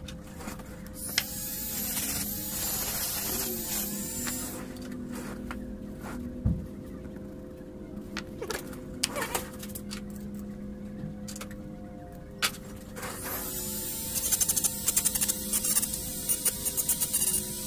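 A small rotary tool whirs with a high, steady whine.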